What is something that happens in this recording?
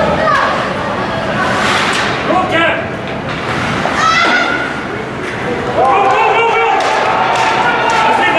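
Spectators shout and cheer in a large echoing arena.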